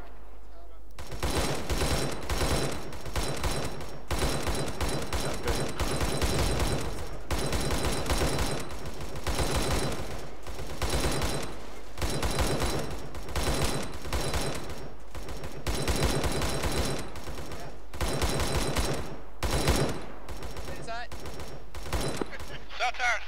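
A heavy machine gun fires in long, rapid bursts.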